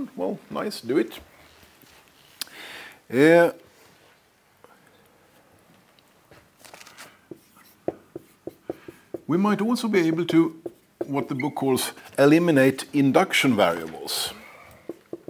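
A middle-aged man lectures calmly.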